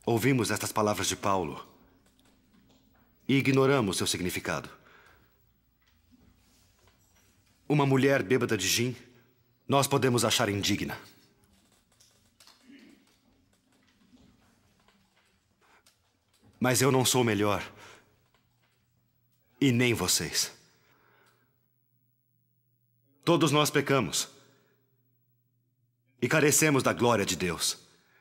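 A man speaks loudly and forcefully in an echoing hall, pausing between phrases.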